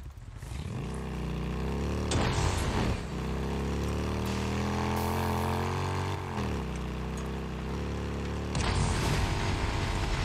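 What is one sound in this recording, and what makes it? A motorcycle engine revs and roars, rising and falling in pitch as it speeds along.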